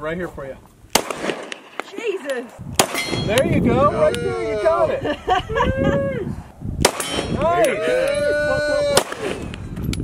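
A pistol fires sharp, loud shots outdoors.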